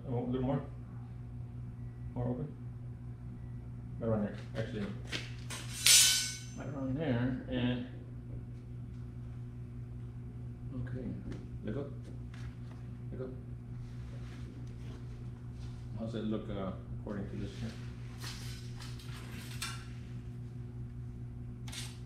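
Metal pieces clink and scrape together.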